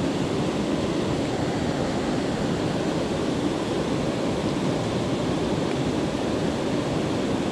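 A stream rushes steadily over rocks close by.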